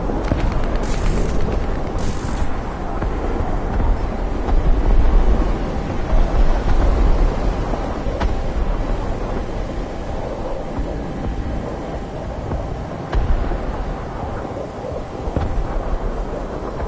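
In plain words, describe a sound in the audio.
A jet engine roars steadily with a deep rumble.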